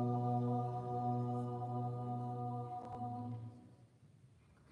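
An organ chord rings out in a large echoing hall and then stops.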